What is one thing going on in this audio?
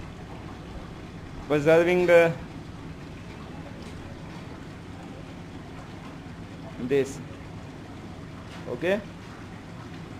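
Water trickles from a plastic bottle into a funnel.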